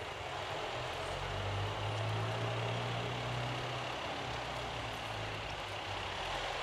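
A van's engine rumbles low as it drives slowly closer.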